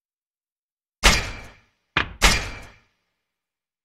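Menu sounds whoosh and click.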